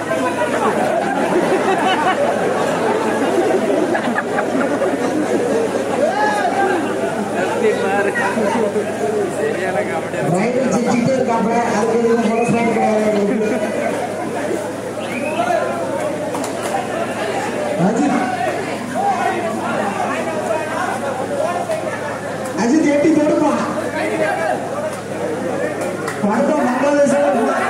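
A large crowd shouts and cheers loudly nearby.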